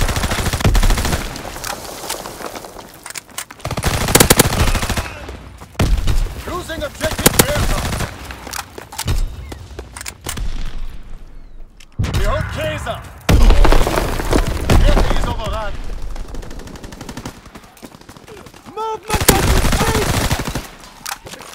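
Gunfire rattles in sharp bursts.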